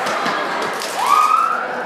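A young girl shouts loudly.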